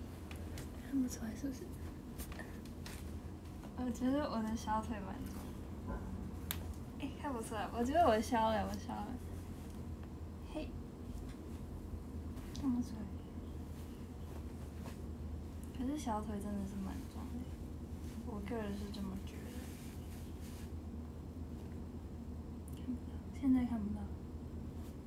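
A young woman speaks briefly and softly, close by, now and then.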